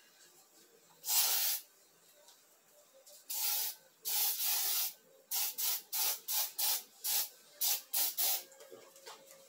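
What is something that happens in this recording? An aerosol spray can hisses in short bursts.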